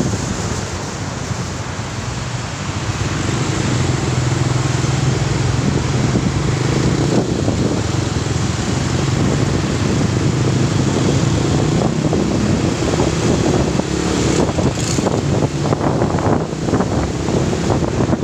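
A motorcycle engine hums steadily while riding through traffic.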